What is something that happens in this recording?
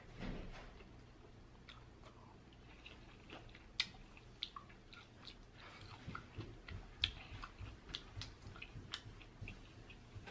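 A young woman chews noisily close to a microphone.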